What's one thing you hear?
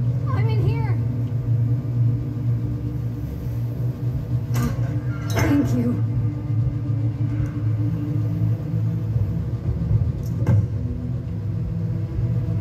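A low droning ambient hum plays throughout.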